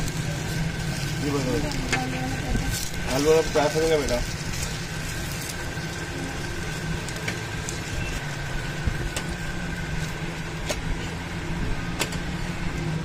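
A metal spatula scrapes and taps on a hot griddle.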